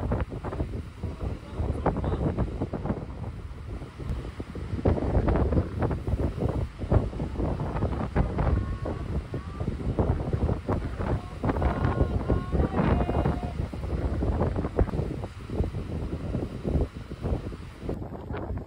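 Waves crash and roar against the rocky shore.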